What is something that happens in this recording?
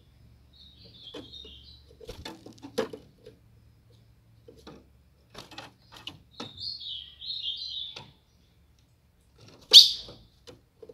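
A small bird chirps in short bursts close by.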